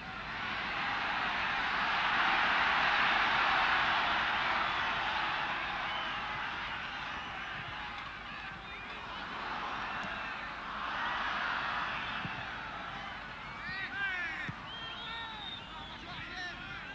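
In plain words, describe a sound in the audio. A football thuds as a player kicks it.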